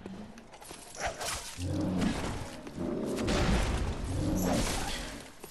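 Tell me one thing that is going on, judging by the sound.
A heavy blade swings through the air with loud whooshes.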